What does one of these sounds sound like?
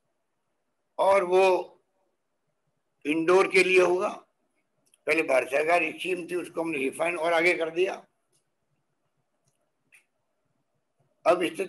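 An elderly man speaks calmly in short phrases through a microphone, heard as if over an online call.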